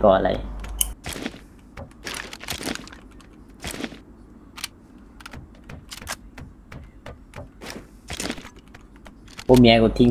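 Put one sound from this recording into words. Footsteps clank on hollow metal.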